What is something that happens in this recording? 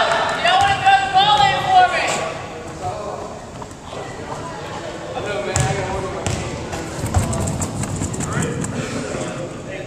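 A volleyball is hit with a sharp slap.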